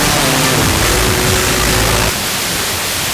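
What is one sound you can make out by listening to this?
Music plays from a car radio.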